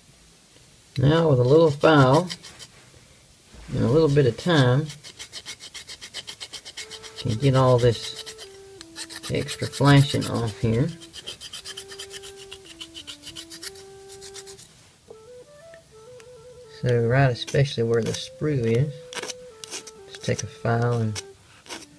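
A metal file rasps back and forth against a metal spoon.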